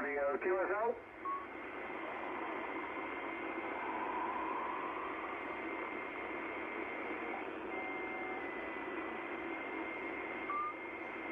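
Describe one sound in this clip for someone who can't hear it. Radio static hisses steadily, with faint whistling tones.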